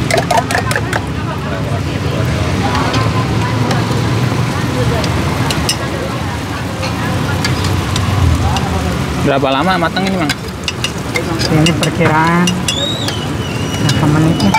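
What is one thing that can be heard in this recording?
A metal spoon scrapes and clinks against a metal cup.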